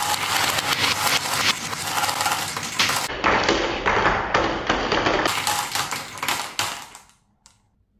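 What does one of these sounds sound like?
Marbles clatter into a plastic toy truck's bed.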